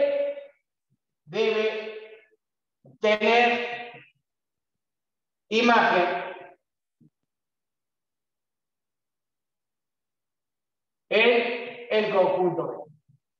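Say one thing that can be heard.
A man speaks calmly in short phrases, with pauses between them.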